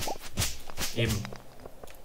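A pickaxe strikes rock with short knocks.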